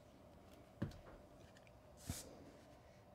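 A card taps against a wooden table.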